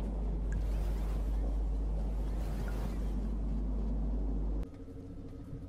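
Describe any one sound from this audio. A deep mechanical hum drones steadily, then abruptly cuts off.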